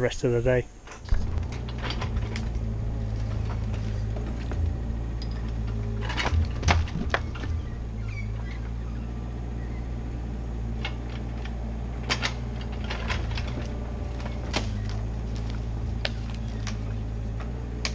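A diesel excavator engine rumbles steadily close by.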